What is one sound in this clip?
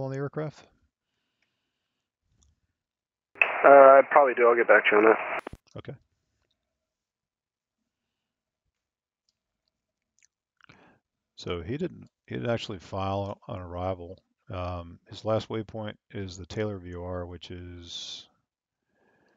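A young man speaks calmly and clearly into a close microphone.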